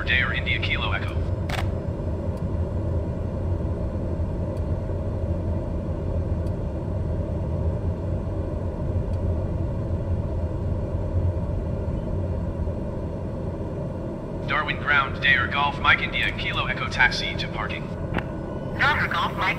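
A jet engine hums steadily with a low rumble.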